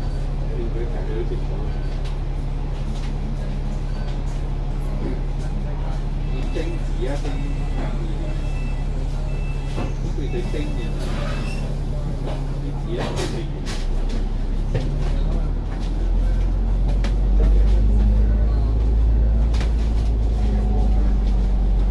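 A tram's motor hums steadily.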